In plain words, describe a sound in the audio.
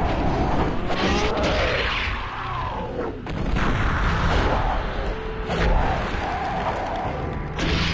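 Swords clash and slash in quick blows.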